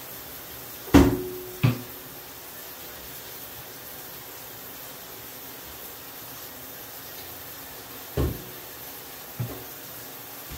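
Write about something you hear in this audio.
Water splashes in a bathtub.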